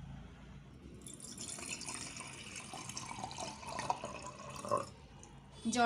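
Water pours into a glass and splashes.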